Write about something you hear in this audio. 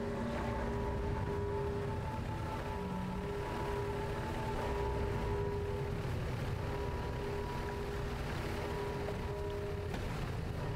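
Deep water rumbles steadily.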